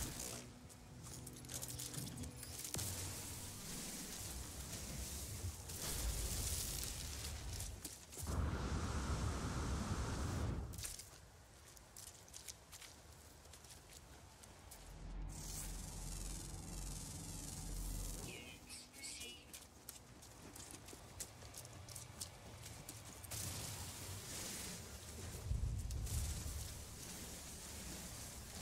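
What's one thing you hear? A mining laser hums steadily as it cuts into crystals.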